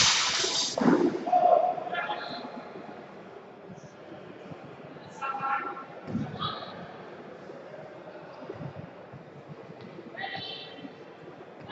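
A man calls out loudly in an echoing hall.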